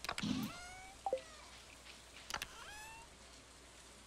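Items drop into place with short bright chimes.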